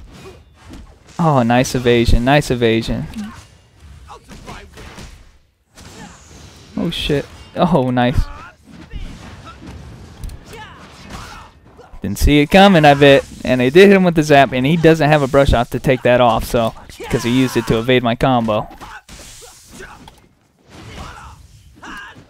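Sword slashes and magic blasts whoosh and crack in quick bursts.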